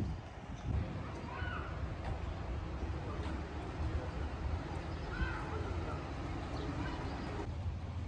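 Cars drive slowly past outdoors.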